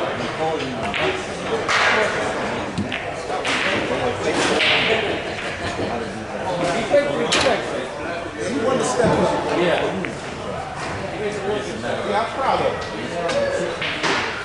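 Several men talk nearby in a busy room.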